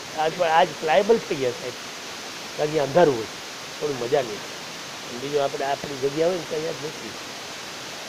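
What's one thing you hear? Elderly men sing together close by.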